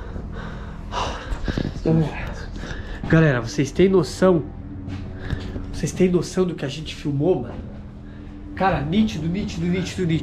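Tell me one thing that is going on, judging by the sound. A man speaks quietly close by, in a hushed voice.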